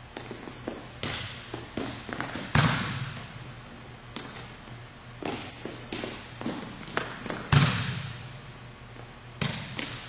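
A volleyball thumps off a player's forearms and echoes through a large hall.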